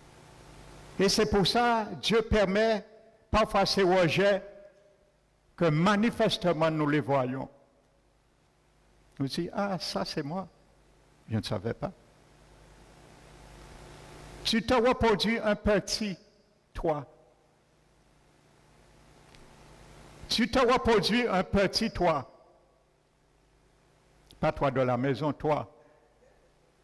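A man preaches with animation through a microphone in a large echoing hall, pausing between phrases.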